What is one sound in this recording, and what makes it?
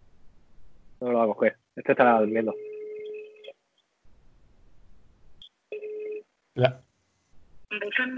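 A second man speaks calmly over an online call.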